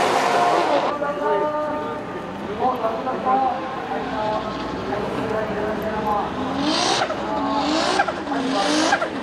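A single car engine idles and blips its throttle up close.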